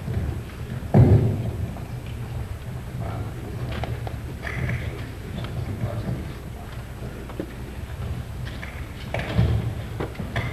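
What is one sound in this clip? Handling noise thumps against a microphone.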